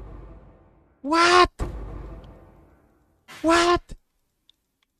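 A young man speaks loudly and with excitement into a close microphone.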